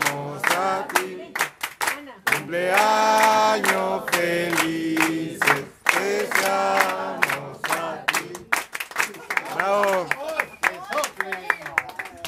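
People clap their hands in rhythm.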